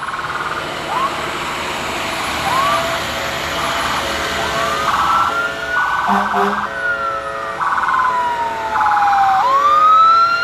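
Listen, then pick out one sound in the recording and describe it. A fire engine siren wails nearby, rising and falling.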